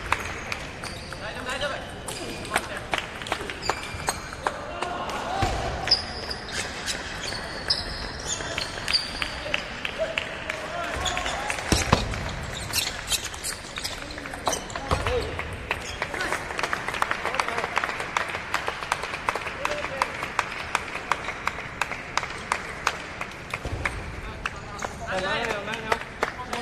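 Ping-pong balls clatter from other tables throughout a large echoing hall.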